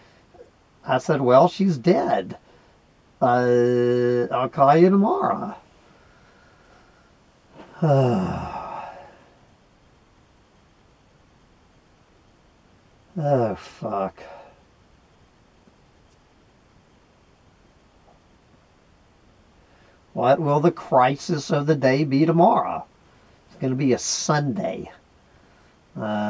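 A young man talks drowsily and close by, in short bursts with long pauses.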